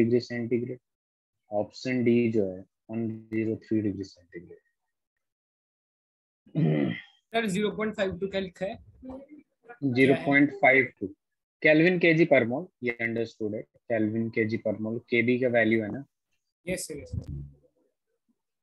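A man talks calmly and explains, close to a microphone.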